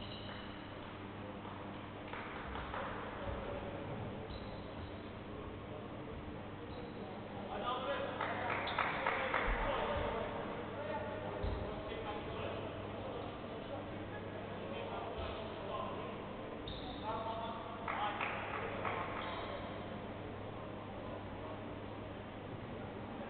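Sneakers squeak on a wooden court in a large echoing hall.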